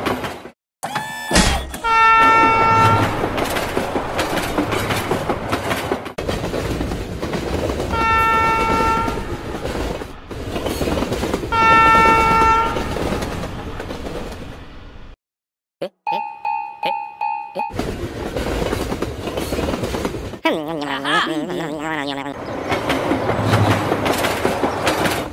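A diesel train engine rumbles steadily as the train rolls along the tracks.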